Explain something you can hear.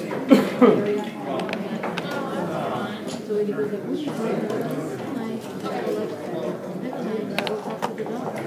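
Plastic checkers click against a wooden board as they are moved.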